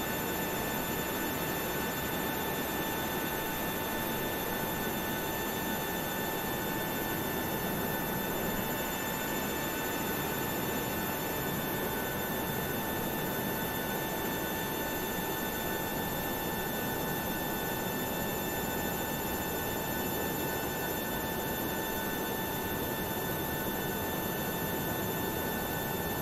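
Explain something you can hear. An aircraft's auxiliary engine whines and roars steadily nearby.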